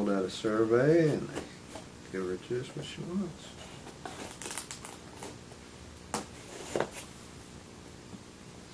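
A blade scrapes and cuts through cardboard.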